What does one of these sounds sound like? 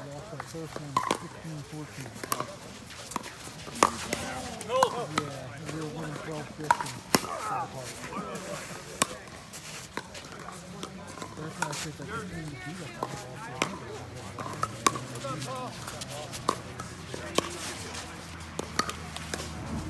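Paddles strike a ball with sharp hollow pops.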